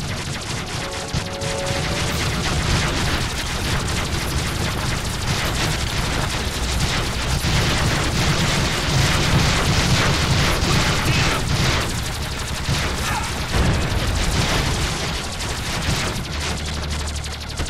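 Rapid gunfire rattles throughout.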